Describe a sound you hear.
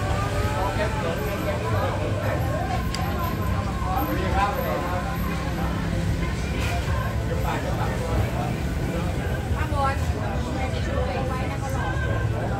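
A spoon and fork clink against a plate.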